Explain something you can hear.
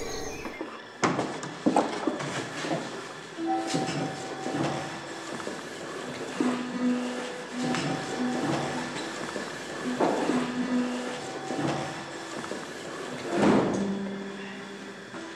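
A piano plays slow, soft notes.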